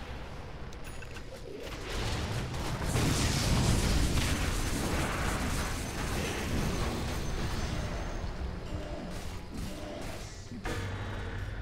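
Game battle effects crackle and boom.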